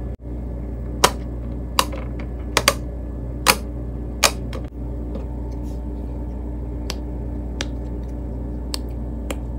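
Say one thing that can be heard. Silicone bubbles pop with soft, sharp clicks as fingers press them.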